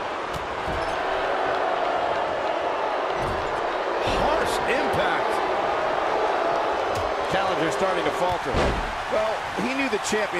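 A large crowd cheers and roars throughout, echoing in a big arena.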